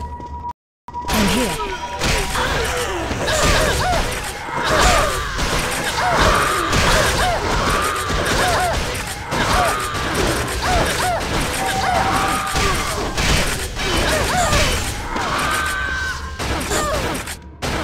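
Magic blasts and blows crash rapidly in a fight.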